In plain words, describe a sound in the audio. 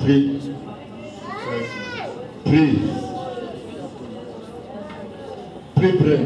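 A group of men and women sing loudly together in an echoing hall.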